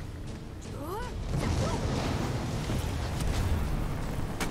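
A frost spell whooshes with an icy blast.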